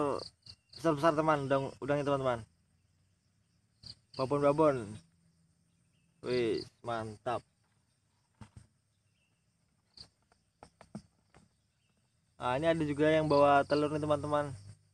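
A young man talks close up, calmly, in bursts with pauses.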